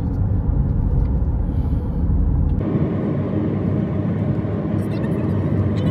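Car tyres rumble steadily on a road from inside the car.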